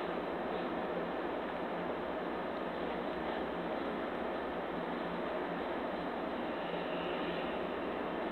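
A felt-tip marker scratches softly on paper.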